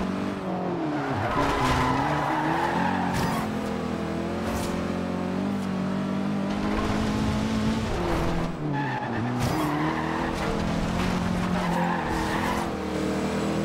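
Tyres skid and hiss on tarmac through the corners.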